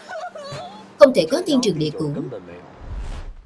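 A young woman speaks in a low, upset voice.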